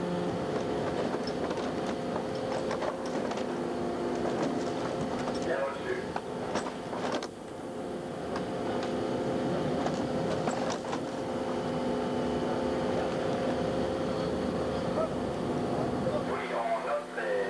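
Waves splash against a ship's hull.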